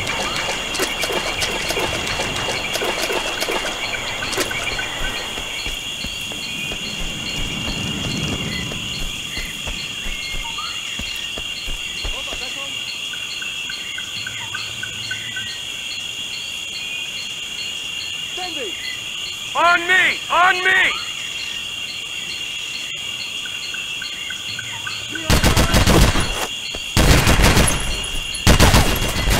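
Footsteps tread on a dirt and leaf-strewn floor.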